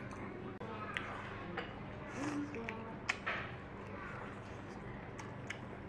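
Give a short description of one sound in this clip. Chopsticks clink against a ceramic bowl.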